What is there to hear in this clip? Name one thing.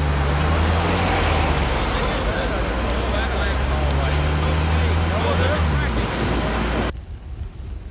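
An engine rumbles close by.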